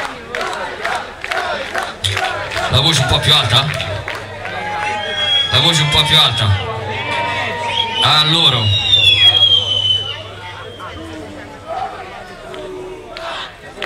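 A man speaks loudly into a microphone, heard through a loudspeaker.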